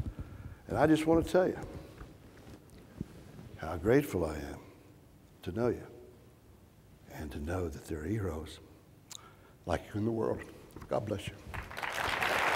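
An elderly man speaks calmly into a clip-on microphone.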